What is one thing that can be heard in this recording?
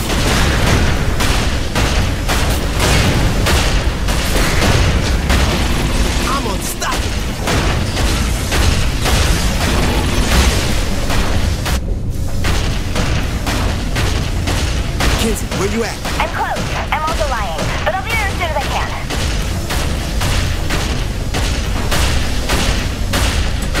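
Heavy guns fire in rapid, booming bursts.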